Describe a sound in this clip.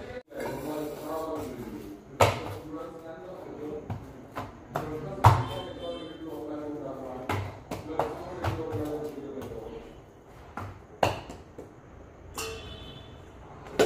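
Metal pans clatter and knock.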